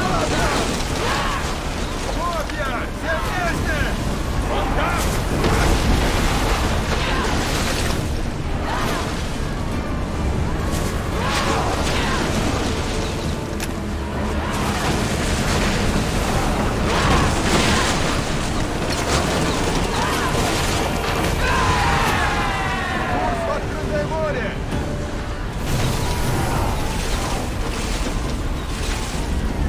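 Waves rush and splash against a ship's hull.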